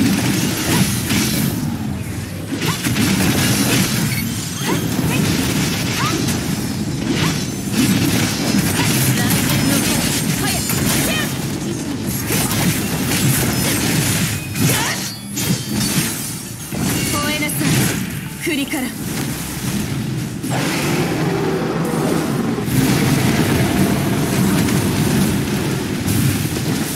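Blades slash and clash in rapid bursts.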